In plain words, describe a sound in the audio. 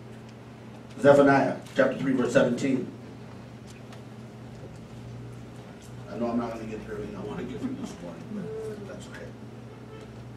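An older man speaks calmly and slowly into a microphone, heard through a loudspeaker.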